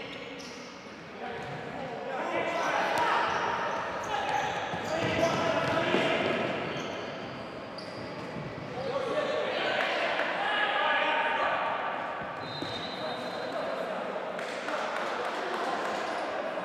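Men shout to each other across a large echoing hall.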